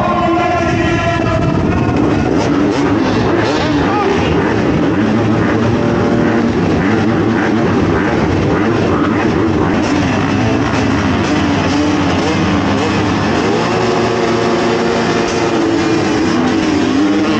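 Several dirt bike engines rev loudly up close.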